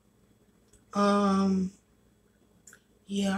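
A young woman speaks briefly, close to the microphone.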